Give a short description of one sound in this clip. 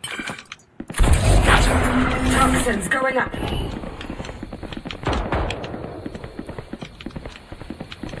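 A video game ability bursts with a loud magical whoosh.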